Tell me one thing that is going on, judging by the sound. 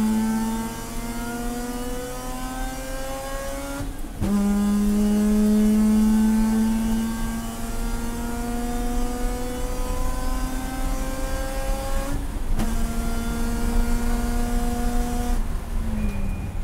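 A race car engine roars loudly from inside the cabin and climbs in pitch.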